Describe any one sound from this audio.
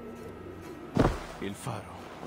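A body lands heavily in deep snow with a thud.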